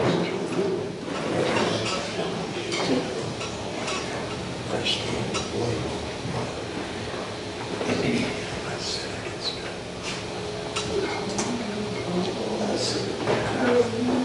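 An elderly man sings through a microphone in a reverberant hall.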